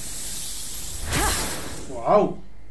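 A bright magical whoosh sweeps up and fades.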